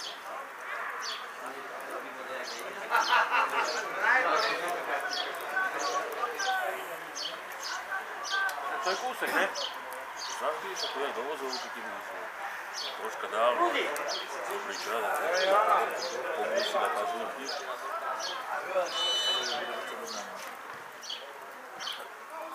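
Men chat and call out nearby, outdoors.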